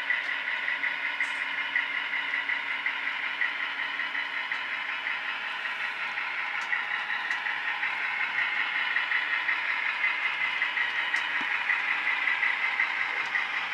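A model train rumbles and clicks steadily along the track.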